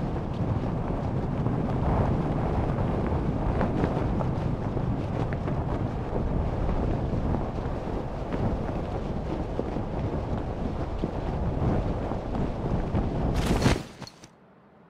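Wind rushes loudly and steadily.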